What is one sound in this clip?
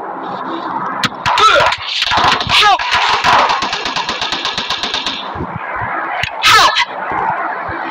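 A rifle fires a series of gunshots.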